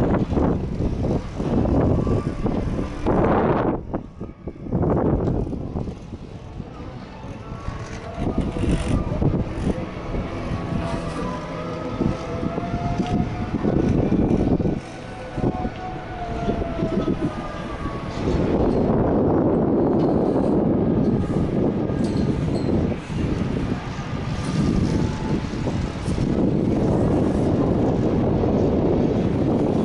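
Strong gusting wind buffets the microphone outdoors.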